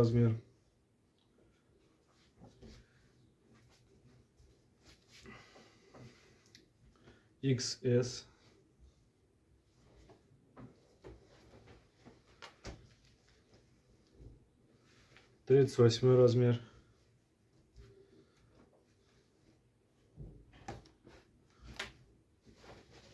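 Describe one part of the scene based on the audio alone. Fabric rustles softly as clothes are handled and laid down.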